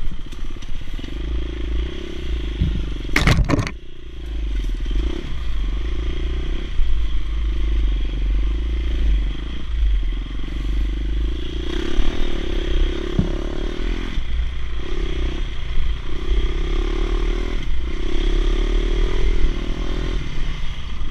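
A dirt bike engine revs and putters up close throughout.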